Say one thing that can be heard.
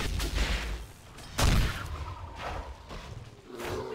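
A fiery blast bursts with a roar.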